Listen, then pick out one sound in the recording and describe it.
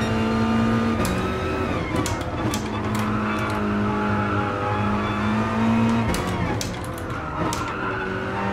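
Gearshifts click sharply.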